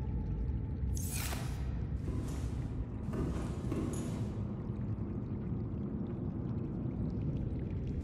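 Water sloshes gently in a pool.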